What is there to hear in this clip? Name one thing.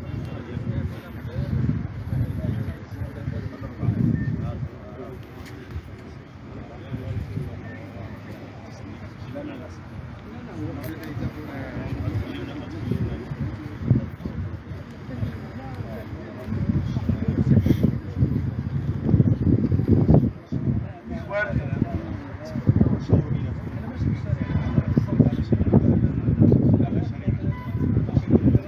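Several men talk at once outdoors, close by.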